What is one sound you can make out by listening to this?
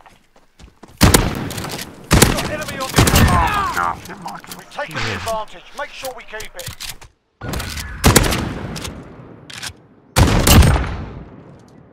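Gunshots fire in quick bursts, ringing out outdoors.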